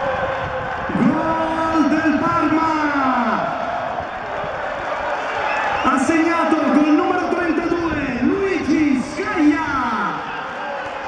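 A large crowd of fans sings and chants loudly in an open stadium.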